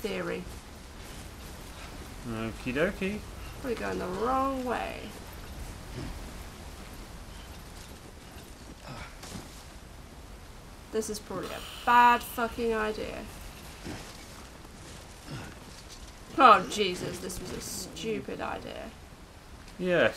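A woman talks and reacts into a microphone.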